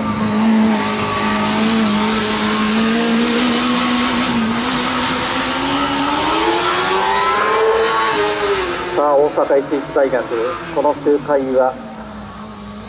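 A racing car engine drones and revs, rising and falling in pitch as it passes at a distance, outdoors.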